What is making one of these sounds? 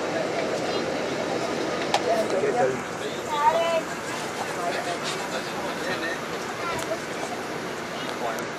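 A bus engine hums steadily from inside a moving bus.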